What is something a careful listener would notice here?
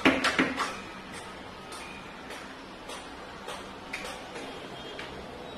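Hands knock and tap against a wooden panel.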